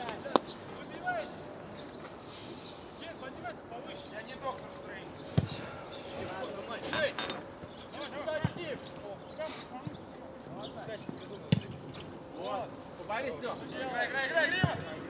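A football is kicked with sharp thuds.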